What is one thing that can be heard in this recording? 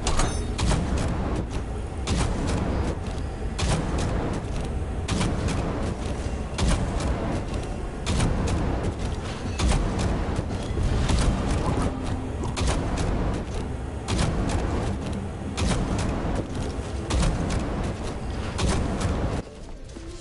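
Game flames whoosh and roar in bursts.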